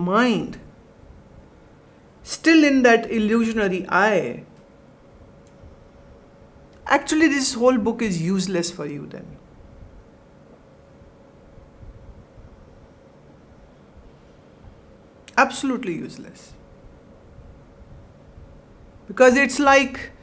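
A middle-aged woman speaks slowly and calmly into a close microphone, with long pauses.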